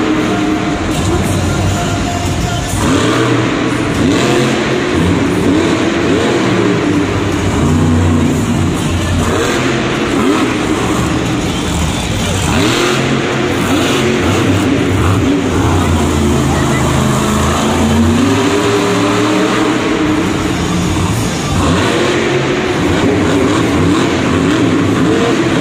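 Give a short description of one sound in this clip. A monster truck engine roars and revs loudly, rising and falling in pitch.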